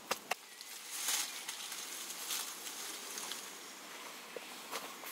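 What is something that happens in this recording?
Boots crunch on dry earth as a man walks.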